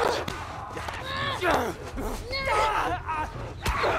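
A young woman grunts and gasps with effort.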